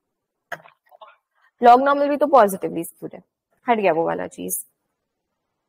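A young woman speaks calmly into a microphone over an online call.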